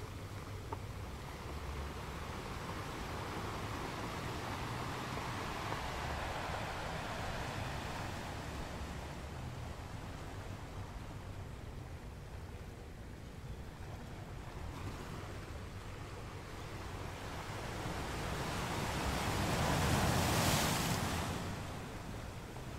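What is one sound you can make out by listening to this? Ocean waves roll in and wash over rocks with a steady rushing sound.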